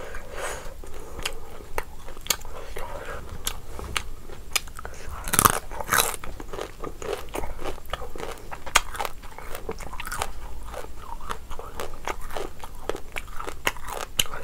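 Fingers squish and mix soft rice and gravy close up.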